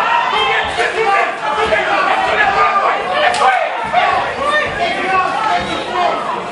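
A crowd of men and women shouts and cheers loudly in a large hall.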